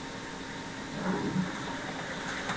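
A man murmurs briefly and quietly through a microphone.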